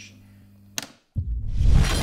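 A light switch clicks.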